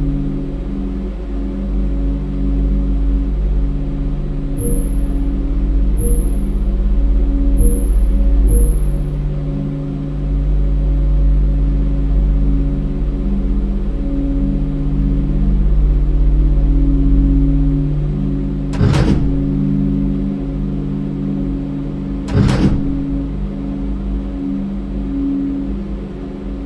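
A low electrical hum drones steadily.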